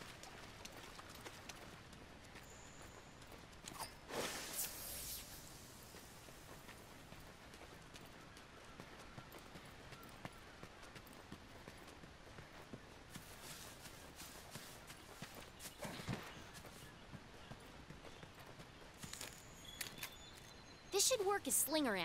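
Footsteps crunch on gravel and dirt.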